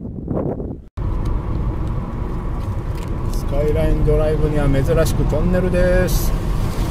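A car's tyres hum steadily on a paved road.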